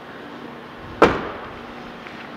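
A car's rear hatch slams shut with a thud.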